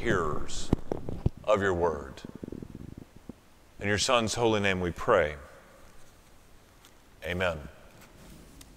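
A middle-aged man speaks slowly and earnestly through a microphone in a large echoing hall.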